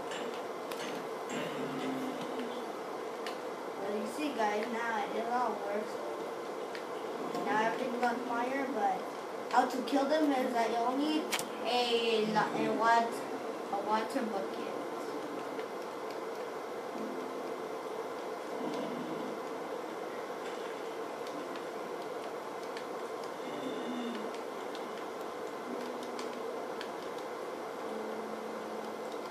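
Video game sound effects play from a television speaker.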